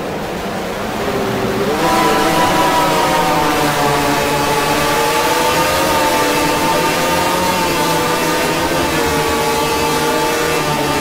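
A motorcycle engine revs loudly at high speed.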